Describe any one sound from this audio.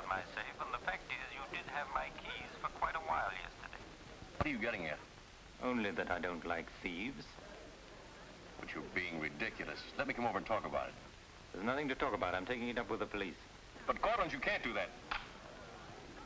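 A man speaks on the telephone in a calm, firm voice.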